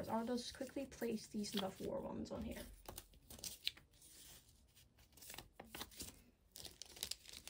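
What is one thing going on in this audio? Cards rustle and slide against plastic sleeves.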